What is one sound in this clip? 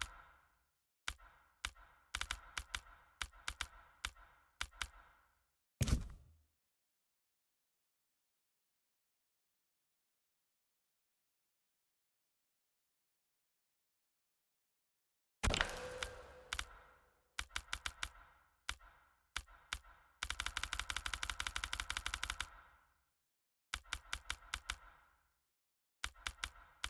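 Short electronic menu clicks tick in quick runs, stopping for a stretch of silence in the middle.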